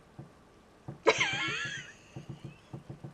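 A young woman laughs loudly and brightly into a microphone.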